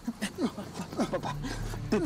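An older man groans in pain.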